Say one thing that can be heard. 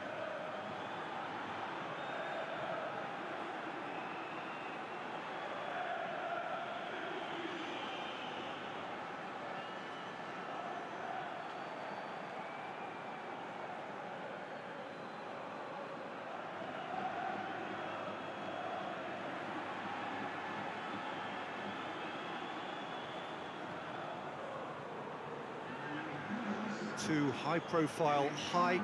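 A large stadium crowd cheers and chants steadily throughout.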